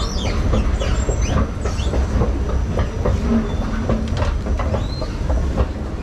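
An escalator hums steadily.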